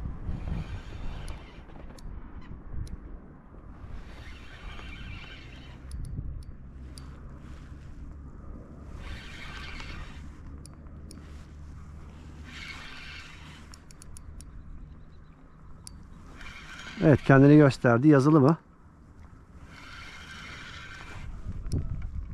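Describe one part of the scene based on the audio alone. A fishing reel whirs in bursts as its line is wound in.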